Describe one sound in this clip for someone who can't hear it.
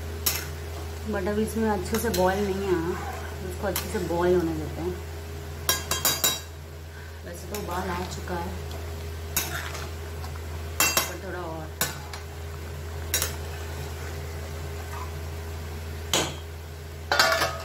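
A thick sauce bubbles and simmers in a pan.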